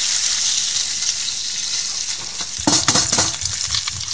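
A fork scrapes and clinks against a metal pot.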